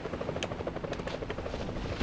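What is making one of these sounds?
Water splashes and churns as a shark breaks the surface.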